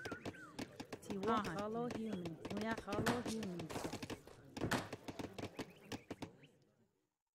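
Quick wooden knocks of building and chopping tap away.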